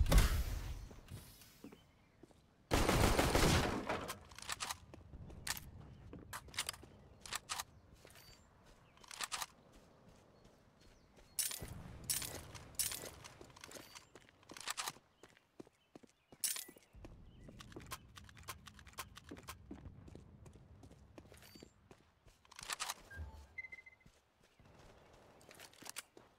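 Footsteps tread steadily.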